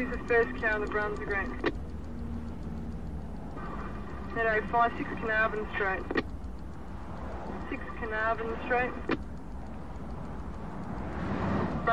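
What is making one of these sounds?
A car engine hums steadily with tyres rumbling on the road.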